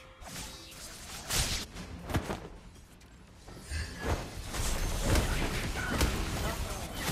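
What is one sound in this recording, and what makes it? Spell effects whoosh and burst in a battle.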